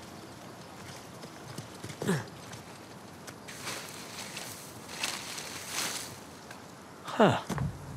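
Footsteps rustle through dense leafy undergrowth.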